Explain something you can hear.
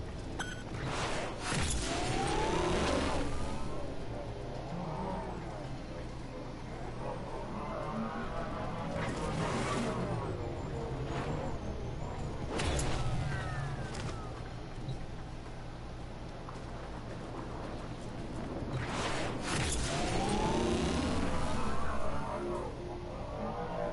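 A hoverboard engine whooshes and roars.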